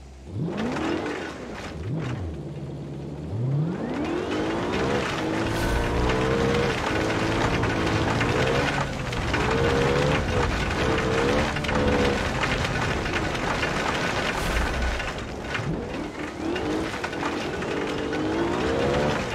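An engine revs hard, rising and falling in pitch as the vehicle shifts gears.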